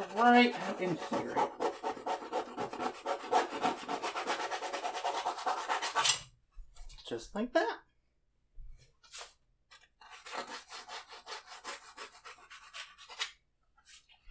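A brush scrubs rapidly against canvas.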